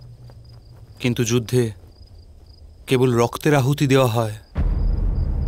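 A young man speaks with feeling, close by.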